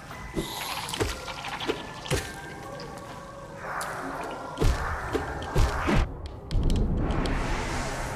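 Sharp video game sword slashes strike.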